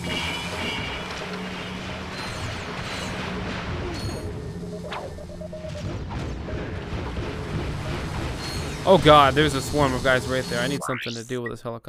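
Laser guns fire in rapid bursts with loud zapping.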